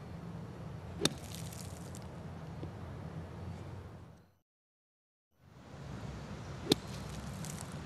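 A golf club strikes sand with a sharp smack.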